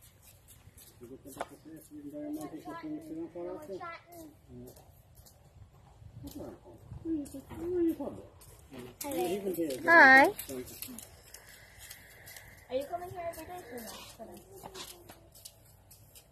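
A young girl talks and calls out cheerfully nearby.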